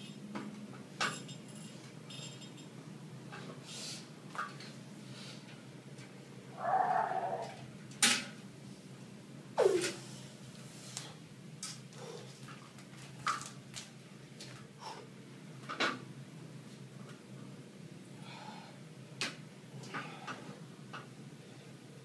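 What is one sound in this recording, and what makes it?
Metal equipment clanks and knocks in an echoing room.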